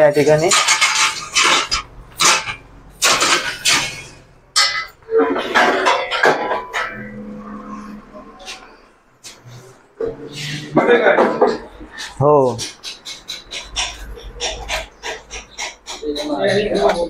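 A metal ladder clanks and rattles as it is unfolded and set down.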